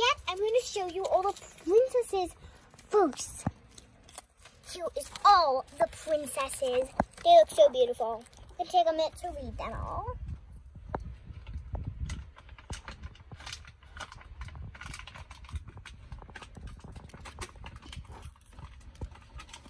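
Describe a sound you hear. A paper strip crinkles and rustles in small hands.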